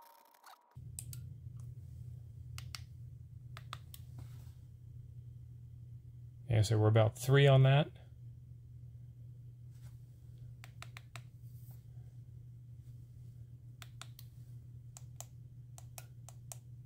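A radio tuning knob clicks as it turns.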